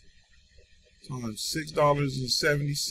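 A young man speaks calmly into a nearby microphone.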